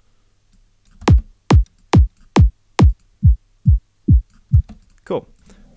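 Deep electronic kick drum thumps play one after another, each dropping quickly in pitch.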